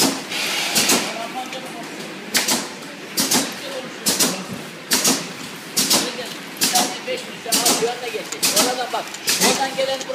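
A bottling machine hums and whirs steadily.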